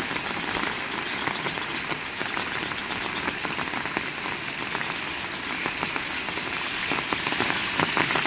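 Raindrops patter and splash on wet pavement.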